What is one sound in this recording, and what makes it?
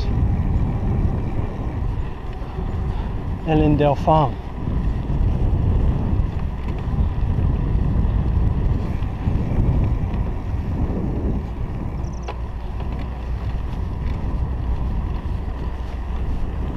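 Bicycle tyres roll on an asphalt road.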